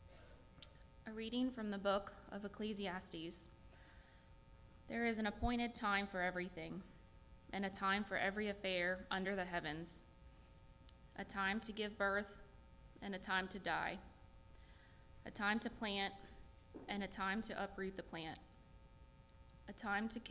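A young woman reads out calmly through a microphone in an echoing room.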